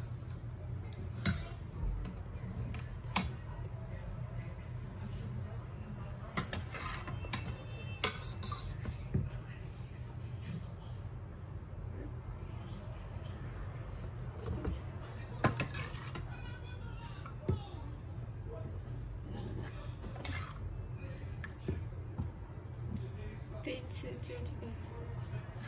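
Liquid splashes and pours from a ladle into a pot.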